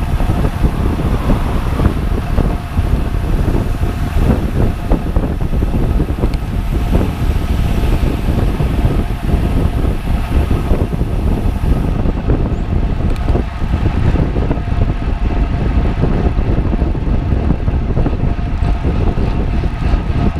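Strong wind rushes and buffets steadily past, as if heard while riding at speed.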